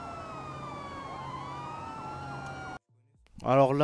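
A police siren wails with sliding tones.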